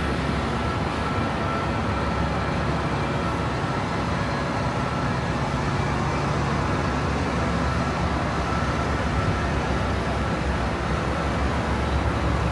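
Bus engines idle with a steady low rumble nearby.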